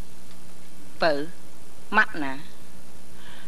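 A woman speaks briefly with animation, close by.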